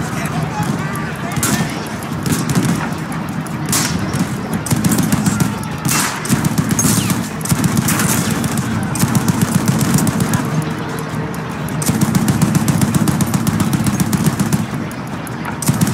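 A tank engine rumbles and clatters steadily.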